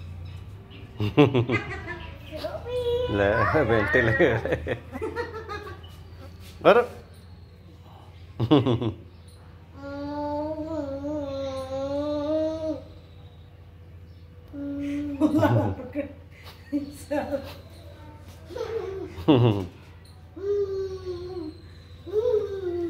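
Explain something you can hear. A young child talks and babbles excitedly close by.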